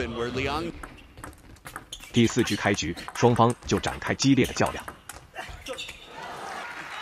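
A table tennis ball clicks quickly back and forth off paddles and the table.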